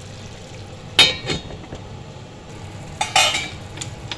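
A metal lid clanks onto a pan.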